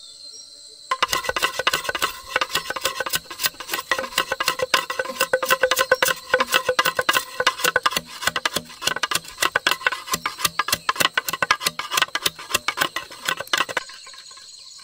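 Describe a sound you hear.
A machete blade scrapes rapidly along a bamboo pole.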